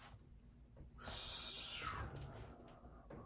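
A young man breathes out loudly.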